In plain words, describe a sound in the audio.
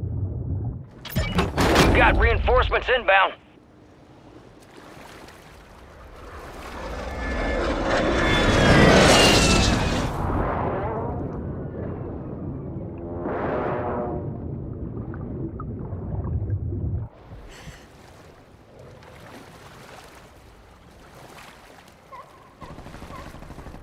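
Water splashes as a swimmer breaks the surface.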